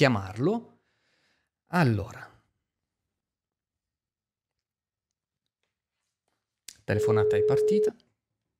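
A young man speaks into a close microphone in short phrases.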